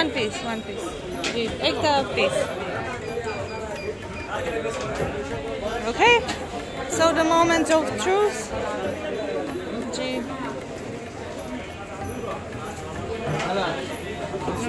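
Several men and women talk nearby.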